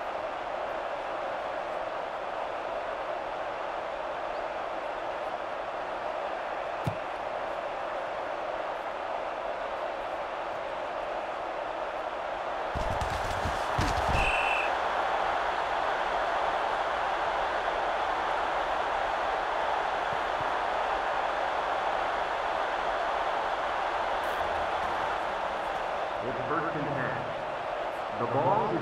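A stadium crowd roars steadily, growing louder midway.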